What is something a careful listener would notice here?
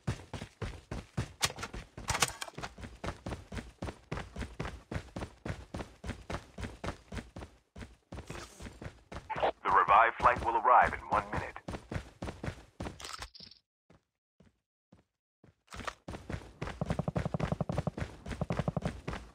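Footsteps thud quickly and steadily on hollow wooden planks.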